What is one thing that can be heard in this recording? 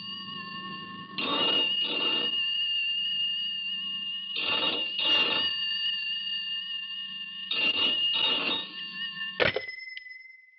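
A telephone rings loudly in bursts.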